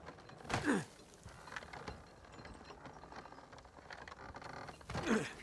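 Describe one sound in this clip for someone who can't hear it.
Hands grip and scrape on a rough wall as someone climbs.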